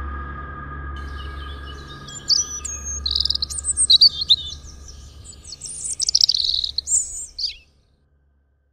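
Birds chirp and twitter.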